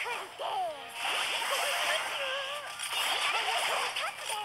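Magic blasts and weapon hits crash in quick, noisy bursts.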